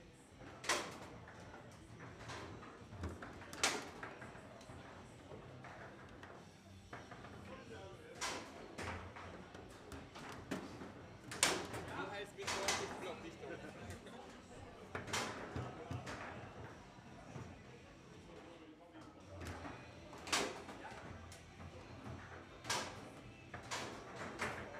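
A table football ball clacks sharply against the rods and walls.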